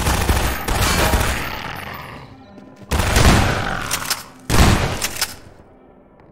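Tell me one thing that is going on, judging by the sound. Loud gunshots boom and echo in a hollow space.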